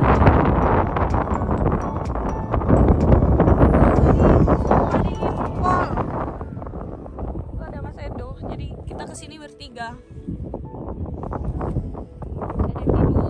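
Wind blows hard across the microphone outdoors, gusting and rumbling.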